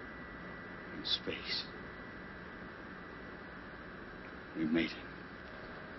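A man speaks briefly in a low, tired voice.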